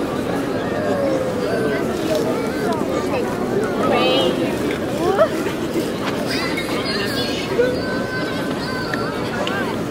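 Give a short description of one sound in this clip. A crowd of people chatters outdoors in a wide open square.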